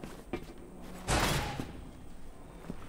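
A heavy metal door slides open with a loud rush.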